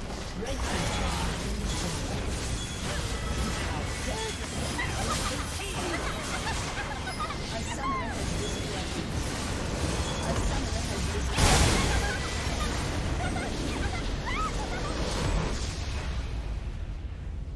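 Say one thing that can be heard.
Game spells and attacks crackle and whoosh in a busy battle.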